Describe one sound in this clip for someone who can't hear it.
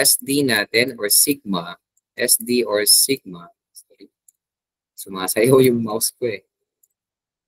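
A man speaks calmly over an online call, explaining.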